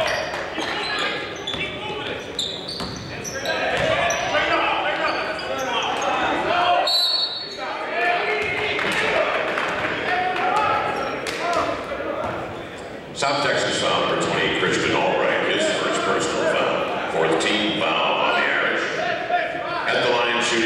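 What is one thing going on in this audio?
Players shout to each other across an echoing gym.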